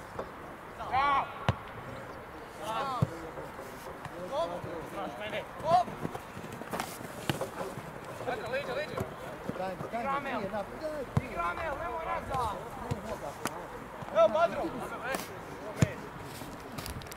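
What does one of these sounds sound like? Men shout to each other across an open field, some distance away.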